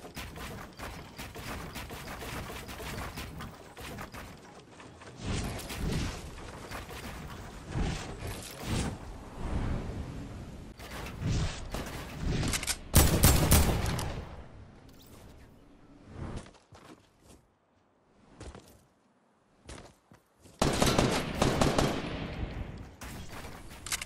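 Wooden walls and ramps clatter quickly into place.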